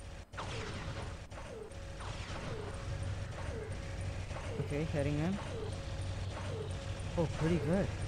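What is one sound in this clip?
Game weapons fire in rapid, repeated bursts with falling whooshing tones.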